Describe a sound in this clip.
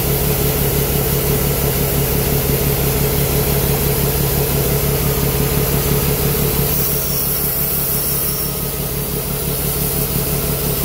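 Shelled corn pours from an unloading auger spout into a grain cart with a rushing hiss.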